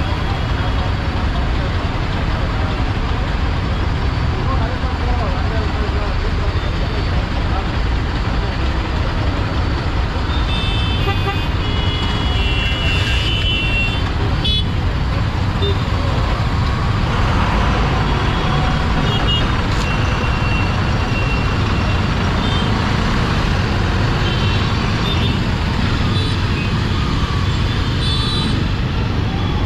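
Busy street traffic drones all around.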